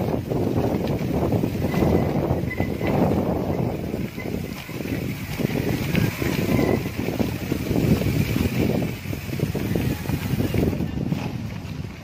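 Mountain bike tyres rumble and rattle over a rough dirt road.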